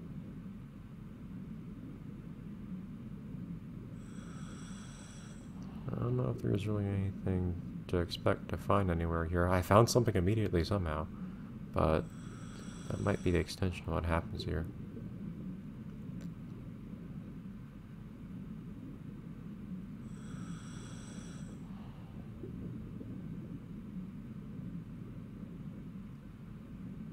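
A low underwater rumble murmurs steadily.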